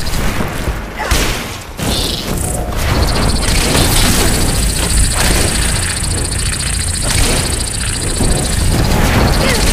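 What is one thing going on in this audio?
A large creature shrieks and roars up close.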